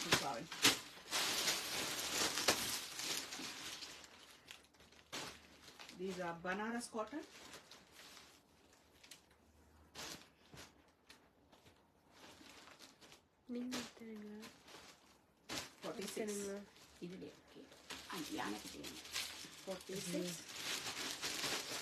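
Fabric rustles as a cloth is unfolded and handled.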